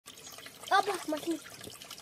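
Water splashes as a young boy scoops it with a hand.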